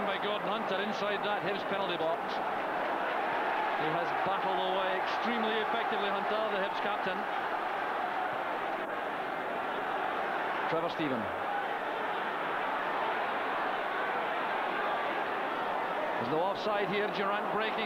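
A large stadium crowd roars and chants loudly throughout.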